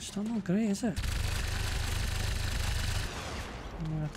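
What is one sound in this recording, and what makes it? A heavy gun fires a long, roaring burst.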